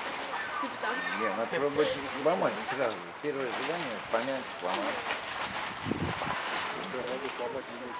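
A bear grunts and huffs close by.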